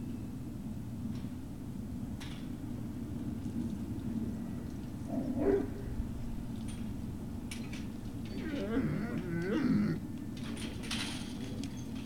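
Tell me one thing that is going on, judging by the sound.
Dogs' paws patter and rustle across dry leaves.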